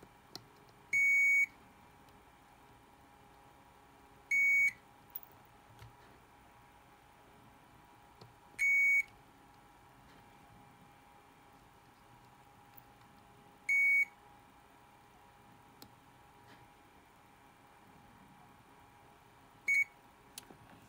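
A multimeter gives short, high beeps every few seconds.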